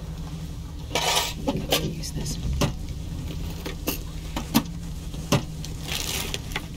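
A metal box clatters open.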